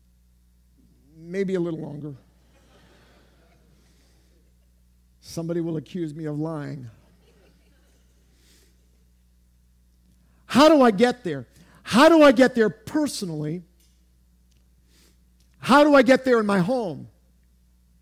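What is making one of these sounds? A middle-aged man speaks with animation through a microphone, in bursts with pauses.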